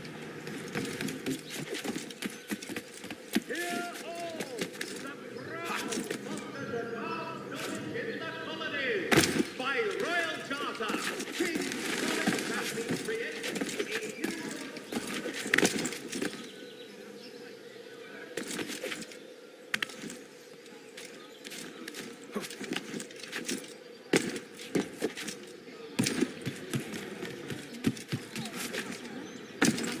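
Footsteps patter quickly across roof tiles.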